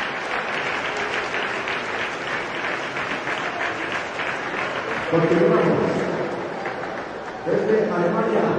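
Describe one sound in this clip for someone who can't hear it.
A crowd of children chatters and shouts in a large echoing hall.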